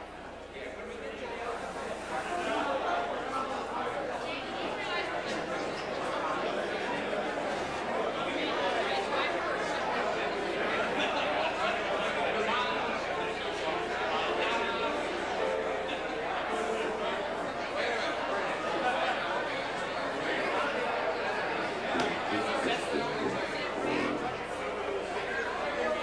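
Several middle-aged men talk and laugh together close by.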